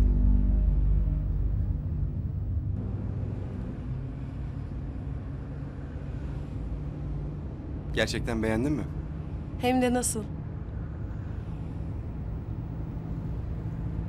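A car engine hums low and steady.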